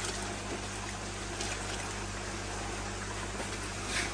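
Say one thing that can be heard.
Water pours into a plastic bucket.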